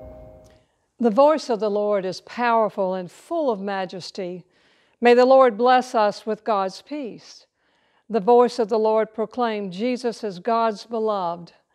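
An elderly woman speaks calmly and clearly into a microphone.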